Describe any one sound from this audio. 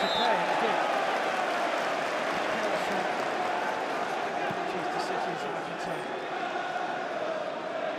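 A large stadium crowd sings and chants loudly all around.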